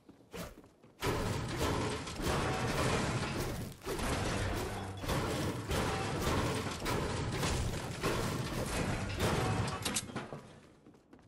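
A pickaxe strikes metal again and again with loud clanging blows.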